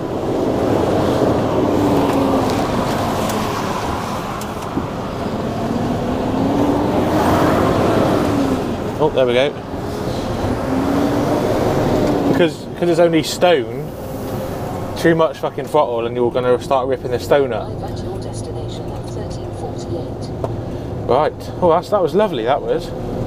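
A truck engine hums and changes pitch as it drives.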